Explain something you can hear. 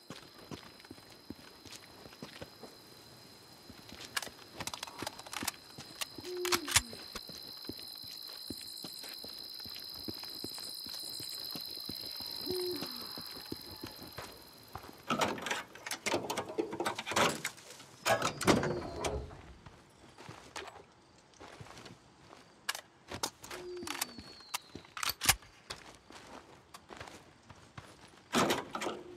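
Footsteps crunch on gravel and dirt.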